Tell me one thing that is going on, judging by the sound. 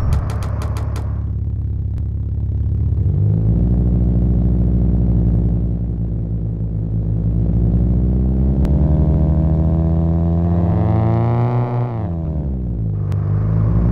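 A car engine hums and revs up through the gears.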